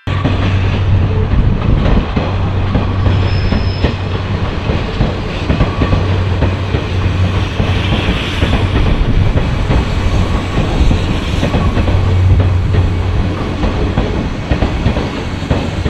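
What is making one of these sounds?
An electric train rumbles along the tracks close by.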